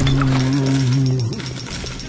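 A heavy metal wrench strikes with a dull thud.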